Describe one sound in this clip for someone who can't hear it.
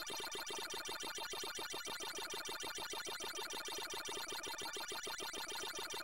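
An arcade game's rapid chomping sound effect repeats steadily as dots are eaten.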